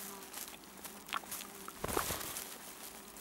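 A small animal rustles through dry pine twigs.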